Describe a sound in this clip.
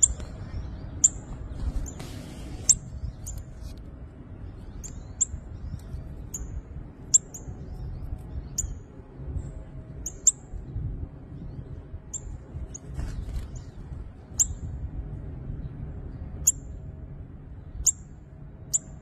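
Small birds chirp in short, high, sharp calls, again and again.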